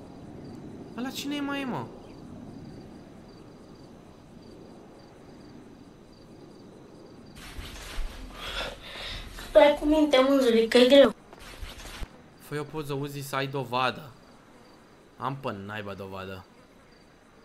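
A young man talks into a microphone with animation.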